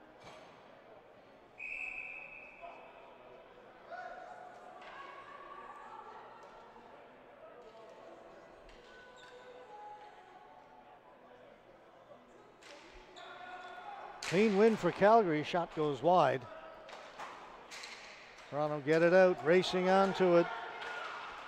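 Spectators murmur and call out in a large echoing arena.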